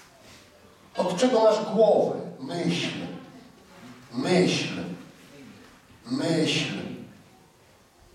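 A man speaks with feeling through a microphone in a large, echoing hall.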